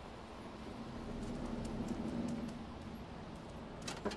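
A cat's paws patter and thud on a tin roof.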